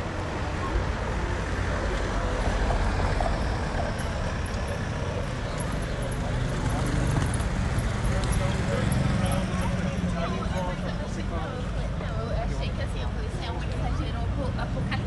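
Men and women chat nearby while walking outdoors.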